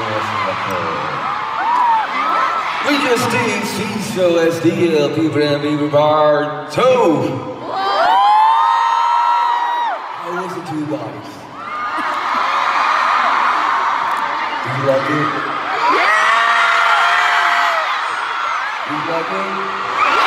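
A crowd cheers and screams loudly in a large hall.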